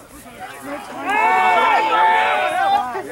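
Spectators cheer and shout loudly.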